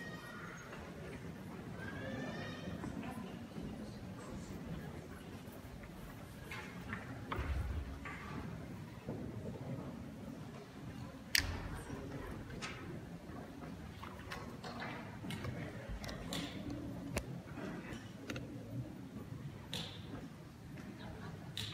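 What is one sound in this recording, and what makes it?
A large congregation murmurs softly in a big echoing hall.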